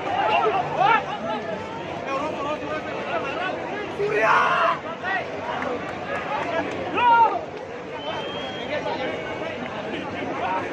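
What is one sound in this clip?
A large outdoor crowd chatters, shouts and cheers all around.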